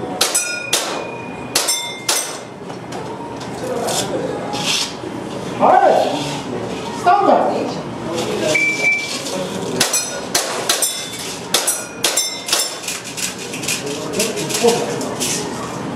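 A gun fires rapid sharp shots in a room with hard walls.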